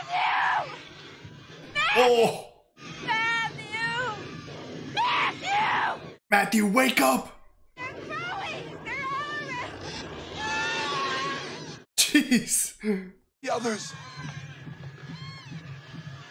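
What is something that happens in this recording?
A young woman groans in disgust.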